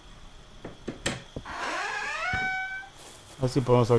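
A wooden door creaks as it swings open.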